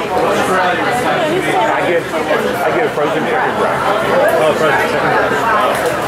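Adult men and women chatter and talk over one another close by.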